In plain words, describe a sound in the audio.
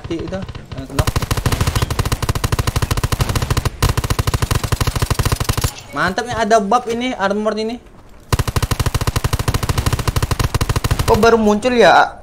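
An automatic rifle fires in long, rapid bursts.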